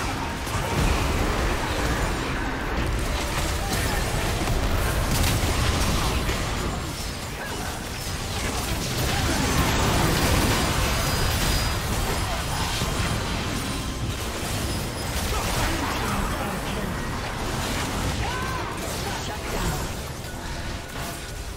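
Magic spells blast, whoosh and crackle in a hectic video game battle.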